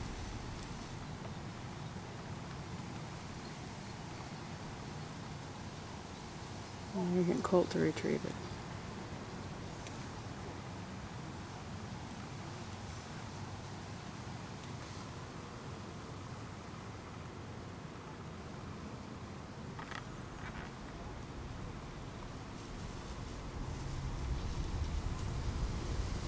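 A dog runs through dry grass, rustling it.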